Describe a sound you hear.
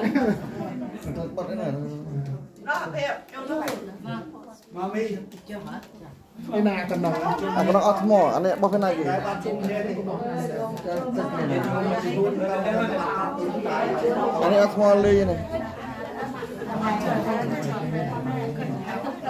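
A group of women chat and talk over one another nearby.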